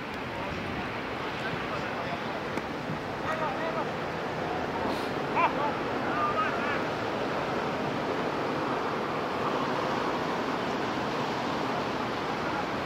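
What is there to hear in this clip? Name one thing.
Wind blows steadily over an open field.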